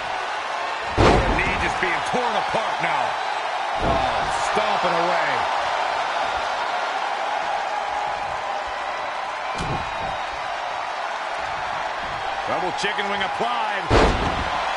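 Heavy thuds of bodies hitting a wrestling mat ring out.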